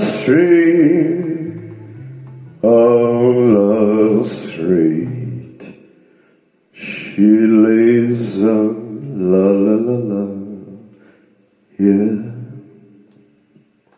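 A singer with a low, sustained voice sings into a microphone.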